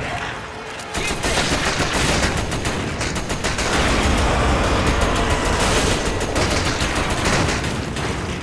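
A gun fires repeated loud shots.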